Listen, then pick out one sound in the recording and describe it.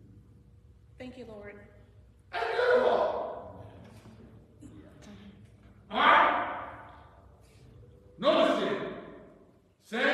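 A man speaks loudly through a microphone in an echoing hall, in short bursts.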